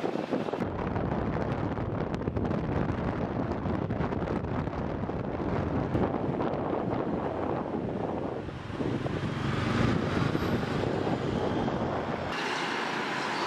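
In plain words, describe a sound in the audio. A car drives along a road with a steady rumble of tyres and wind.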